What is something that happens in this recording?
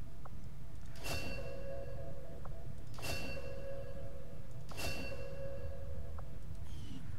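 A game alert chimes three times, evenly spaced.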